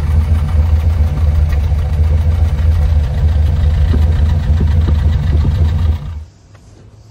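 A car engine idles with a deep, rumbling burble from the exhaust close by.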